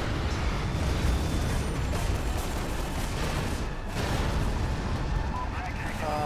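Heavy crashes and explosions rumble on through the fighting.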